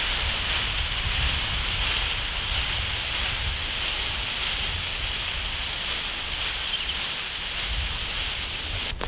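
Leafy branches rustle as they are carried along.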